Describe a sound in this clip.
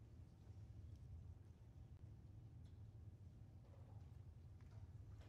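An audience murmurs softly in a large echoing hall.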